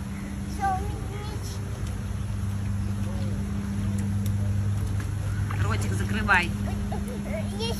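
Water splashes as a small child paddles.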